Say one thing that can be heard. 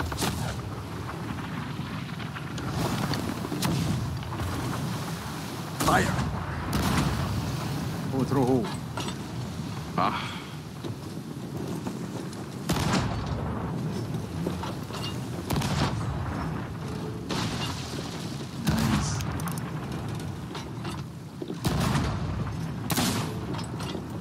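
Cannons boom nearby and far off, again and again.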